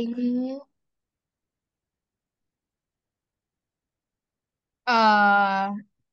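A woman speaks clearly through an online call, in short phrases with a long pause.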